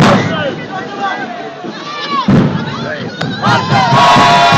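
A crowd of young people cheers and shouts outdoors.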